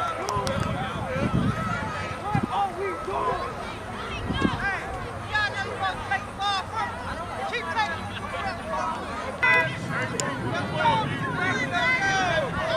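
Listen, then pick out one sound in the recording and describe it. A crowd of adult spectators shouts and cheers outdoors.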